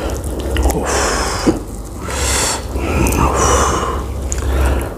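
Crispy chicken crunches and tears apart in a gloved hand.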